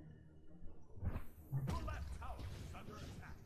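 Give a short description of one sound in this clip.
A fiery magic blast whooshes and crackles.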